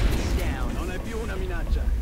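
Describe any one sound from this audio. A gun fires with a sharp blast.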